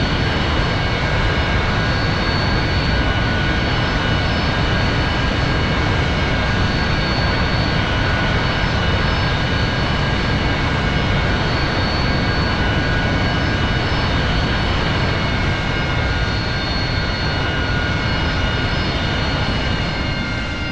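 A jet engine roars steadily with a high whine as the jet taxis.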